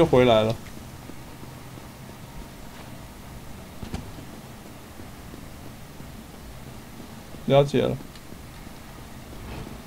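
Footsteps run over stone floors.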